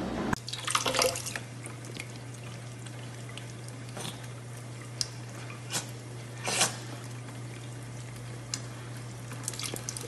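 A cat laps at running water.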